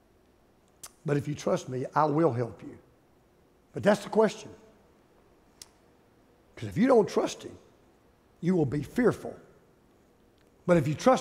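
An older man speaks with emphasis into a headset microphone, pausing between phrases.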